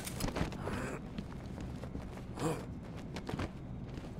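Boots land with heavy thuds on metal.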